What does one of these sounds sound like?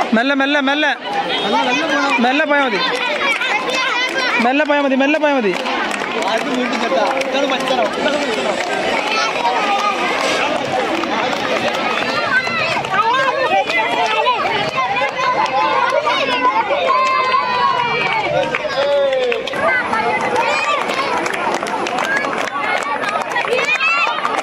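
A crowd of children chatter, shout and cheer loudly outdoors.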